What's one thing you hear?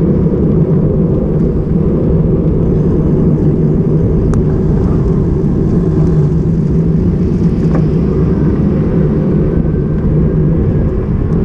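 Wind buffets the microphone of a cyclist riding along a street.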